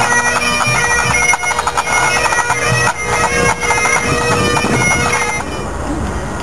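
A pipe band's drums beat a steady march rhythm.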